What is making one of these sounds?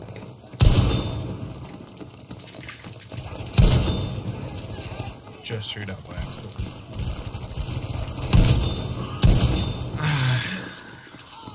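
A shotgun's pump is racked with a metallic clack.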